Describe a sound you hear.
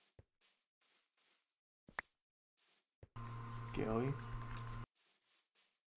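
Footsteps thud softly on grass in an even rhythm.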